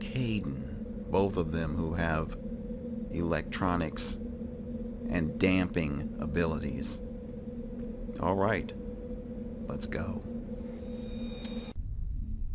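Electronic menu beeps and chimes sound several times.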